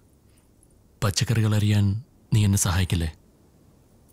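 A man speaks calmly and low nearby.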